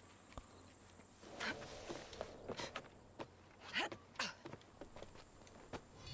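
Hands and feet knock and scrape on wooden scaffolding during a climb.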